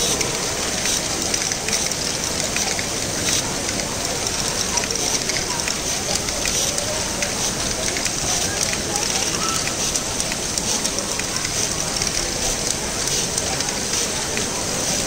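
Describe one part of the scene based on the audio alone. A crowd murmurs throughout a large echoing hall.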